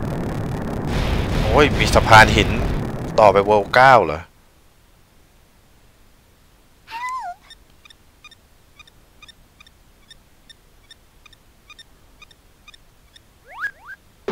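Video game sound effects chime and jingle.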